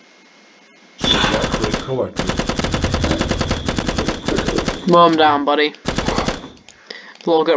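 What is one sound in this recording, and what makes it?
Rapid gunfire rattles in long bursts.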